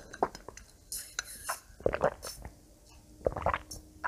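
A young woman sips a drink.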